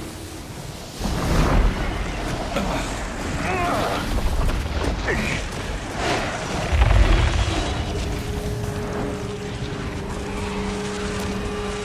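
Strong wind roars and howls.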